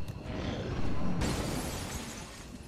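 A blast booms and hisses.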